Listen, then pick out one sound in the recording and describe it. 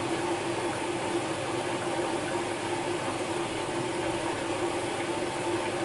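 Wet laundry tumbles and swishes inside a washing machine drum.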